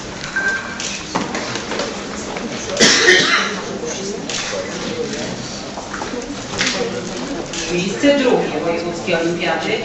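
A crowd of men and women murmurs and talks nearby in a room.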